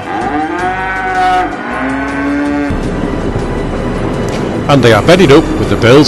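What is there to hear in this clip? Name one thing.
Cattle moo loudly nearby.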